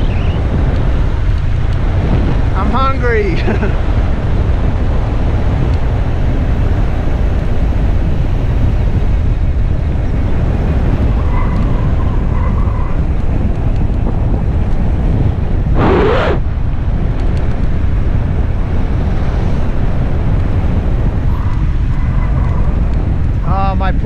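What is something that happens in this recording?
Wind rushes past a bicycle rider descending at speed.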